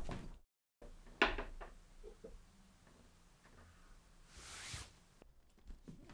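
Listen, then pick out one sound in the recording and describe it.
Cardboard boxes are lifted and set down on a stack.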